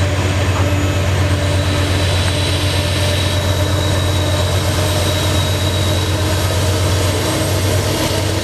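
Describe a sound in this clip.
Train wheels roll and clatter on the rails.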